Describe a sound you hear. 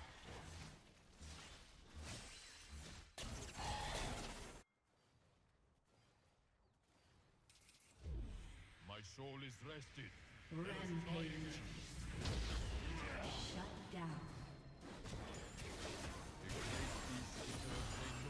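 Video game combat sounds clash and whoosh.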